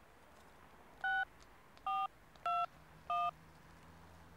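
A mobile phone beeps several times as a number is dialled.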